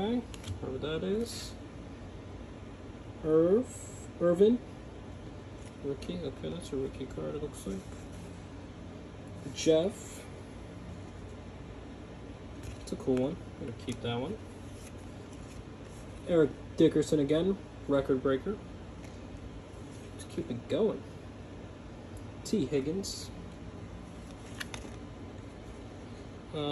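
Trading cards slide and rustle softly between fingers.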